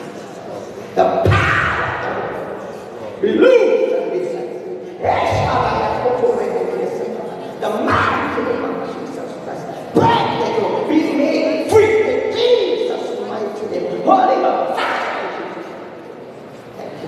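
A man preaches loudly and fervently into a microphone, echoing in a large hall.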